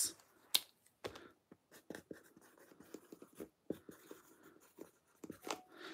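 A marker squeaks faintly on cardboard.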